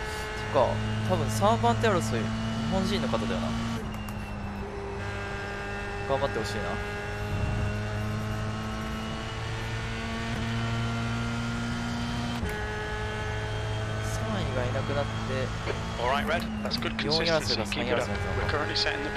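A racing car engine whines steadily and shifts pitch with gear changes.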